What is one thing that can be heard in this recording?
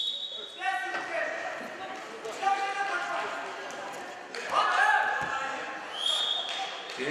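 A crowd of spectators shouts and cheers in an echoing hall.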